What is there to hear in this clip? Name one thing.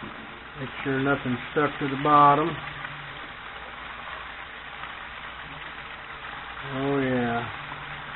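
Water bubbles and boils in a pot.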